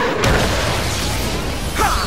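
A sword swings and slashes.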